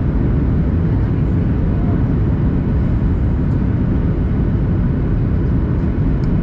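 Jet engines roar steadily inside an airliner cabin in flight.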